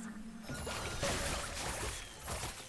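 Magical spell effects whoosh and crackle in bursts.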